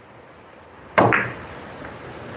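A cue tip strikes a cue ball with a sharp click.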